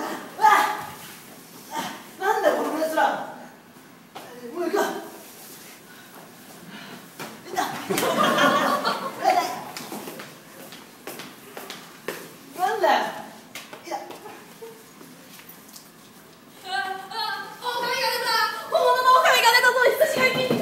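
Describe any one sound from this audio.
Young people laugh and shout with excitement nearby.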